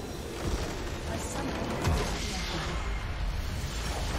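A loud magical explosion booms and crackles.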